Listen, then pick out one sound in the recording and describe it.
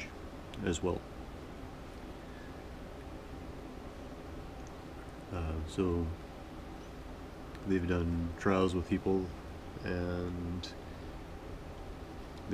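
A needle and thread pull softly through fabric.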